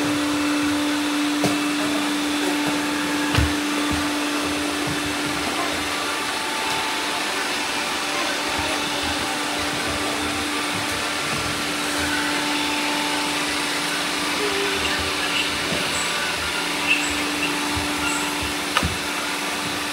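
Robot vacuum cleaners hum and whir steadily nearby.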